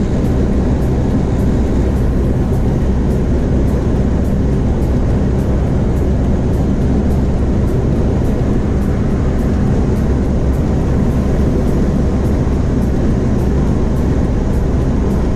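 A car's engine hums steadily while driving at speed.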